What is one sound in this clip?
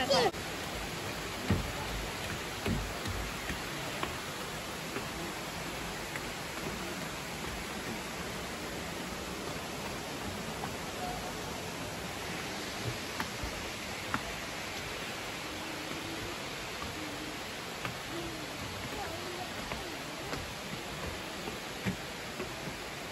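Footsteps thud on wooden stairs outdoors.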